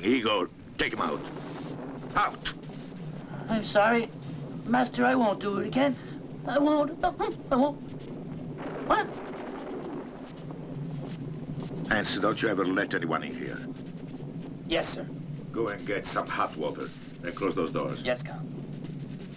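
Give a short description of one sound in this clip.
A man speaks in a tense, forceful voice.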